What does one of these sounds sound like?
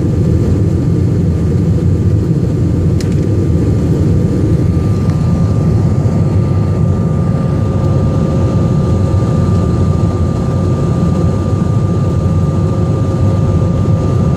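Jet engines roar steadily with a low, constant rumble.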